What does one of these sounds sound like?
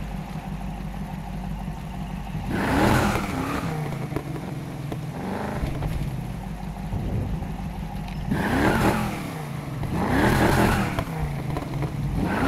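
A car engine rumbles and revs up in bursts.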